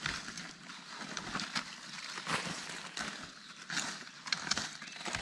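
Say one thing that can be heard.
Dry leaves rustle and crunch underfoot as a person moves through undergrowth.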